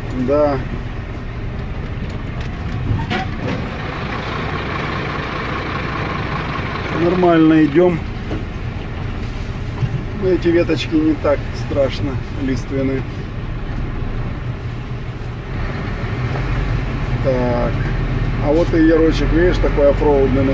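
A vehicle engine hums steadily while driving slowly over a bumpy dirt track.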